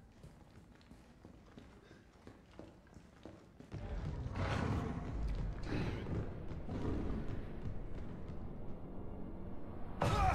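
Footsteps walk and then run on a hard floor.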